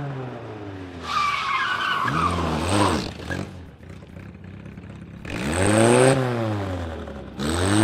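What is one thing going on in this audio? Tyres screech on asphalt as a car slides through a turn.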